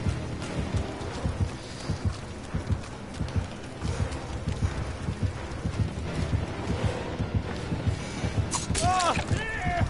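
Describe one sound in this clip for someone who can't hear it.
Quick footsteps thud along the ground.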